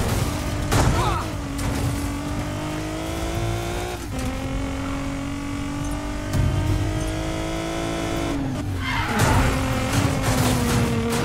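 A car engine roars at high revs, shifting gears as it speeds up.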